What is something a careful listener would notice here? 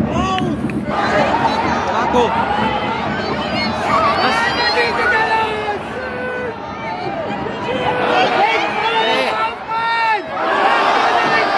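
A large stadium crowd roars louder as the attack builds.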